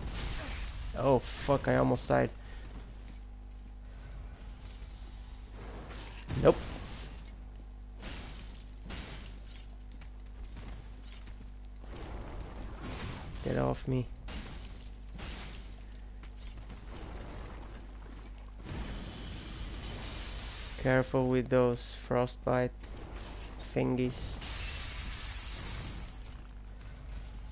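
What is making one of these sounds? Ice crystals crack and shatter.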